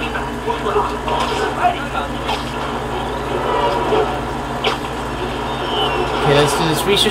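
Video game sound effects play from a television.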